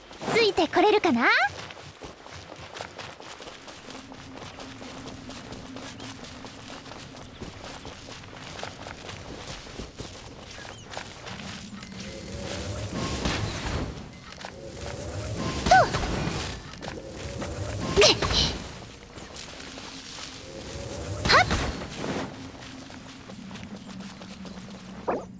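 Footsteps patter quickly along the ground.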